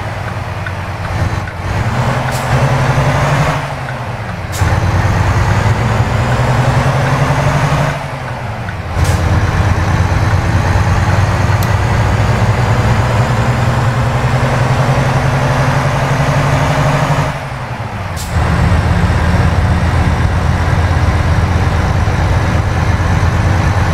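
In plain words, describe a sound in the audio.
A truck's diesel engine drones loudly, rising in pitch and briefly dropping away at each gear change.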